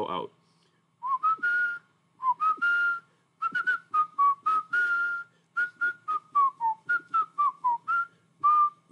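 A man whistles short notes close to a microphone.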